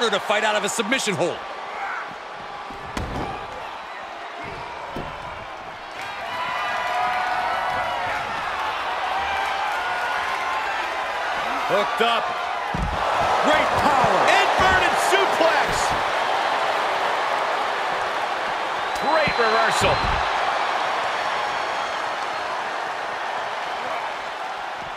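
A crowd cheers and roars loudly.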